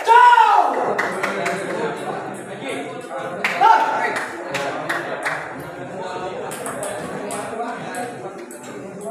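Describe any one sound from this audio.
A table tennis ball clicks back and forth on paddles and the table.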